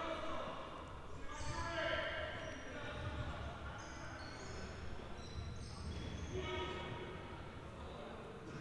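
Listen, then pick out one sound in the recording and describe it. A ball thuds as it is kicked and bounces on the floor.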